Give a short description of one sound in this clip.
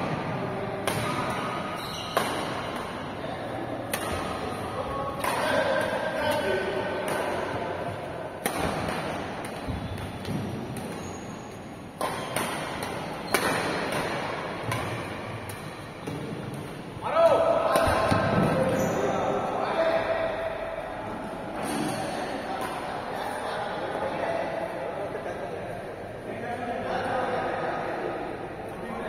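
Men call out and talk in a large echoing hall.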